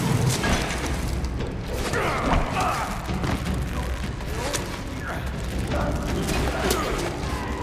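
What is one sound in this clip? A rope creaks and rasps as a climber slides down a rock face.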